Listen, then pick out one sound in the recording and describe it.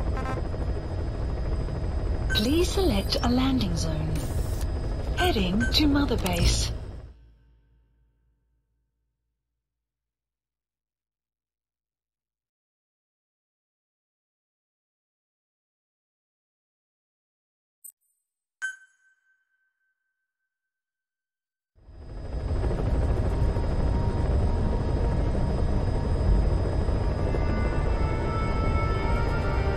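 A helicopter engine rumbles steadily from inside the cabin.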